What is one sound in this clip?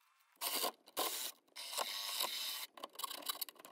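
A jigsaw buzzes in short bursts through wood.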